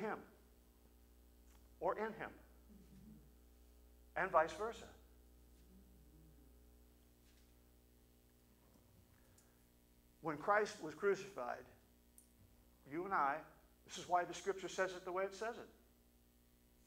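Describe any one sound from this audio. A middle-aged man speaks calmly into a microphone, with long pauses.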